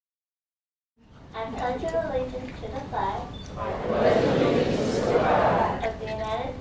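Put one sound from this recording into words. A large crowd of men and women sings together in a room with some echo.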